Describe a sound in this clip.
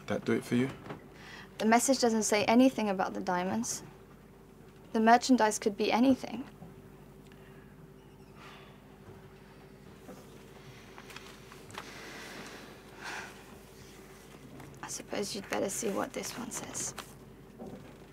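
A young woman speaks quietly and earnestly, close by.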